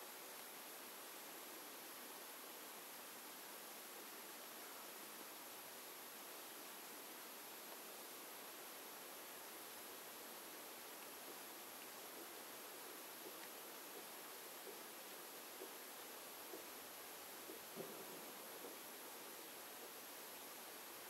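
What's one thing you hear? A deer crunches and chews corn softly nearby.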